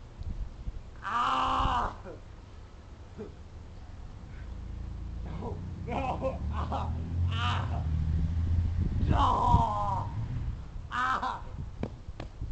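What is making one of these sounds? Young men shout and laugh outdoors, close by.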